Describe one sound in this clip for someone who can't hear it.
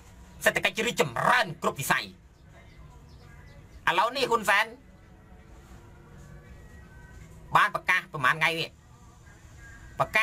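A young man speaks with animation into a phone microphone, in short bursts.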